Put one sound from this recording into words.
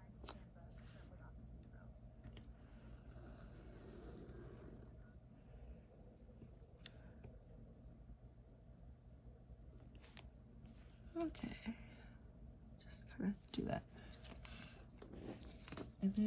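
A pen scratches softly across paper.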